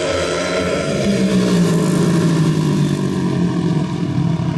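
A motorcycle engine revs and fades as a bike passes close by.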